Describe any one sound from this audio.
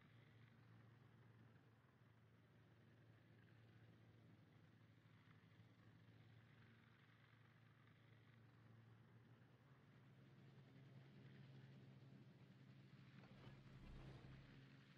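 A ship's engine rumbles steadily.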